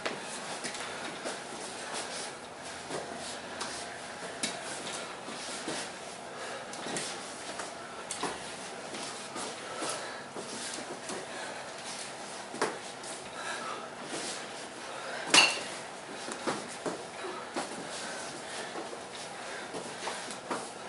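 Footsteps shuffle and thump on a padded floor.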